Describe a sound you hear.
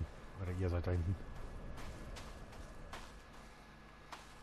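Footsteps fall on dry grass and earth.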